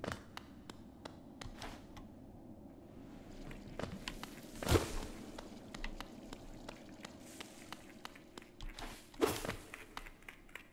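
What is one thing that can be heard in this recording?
A video game plays short soft taps and whooshes.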